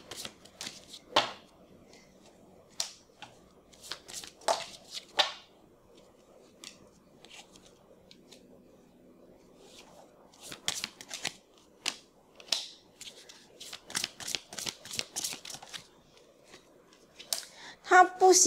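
Cards tap and slide softly onto a table.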